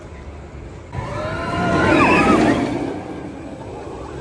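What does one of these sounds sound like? A roller coaster train roars past on its track.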